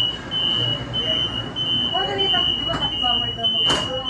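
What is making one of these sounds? Light rail train doors slide shut.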